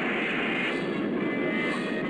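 Steam hisses loudly from a machine.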